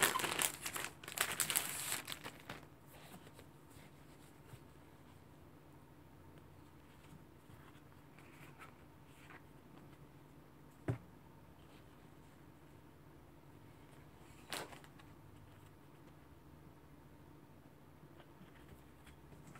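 Glossy paper sheets rustle and crinkle as they are handled.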